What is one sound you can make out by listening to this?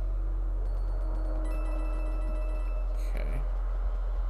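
Coins jingle with a bright chiming sound.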